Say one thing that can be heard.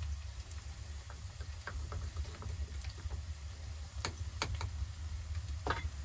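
A spoon stirs and clinks against a small metal pot.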